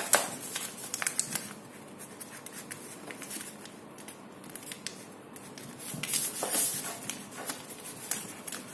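A child's hands fold and crease a sheet of paper on a tabletop.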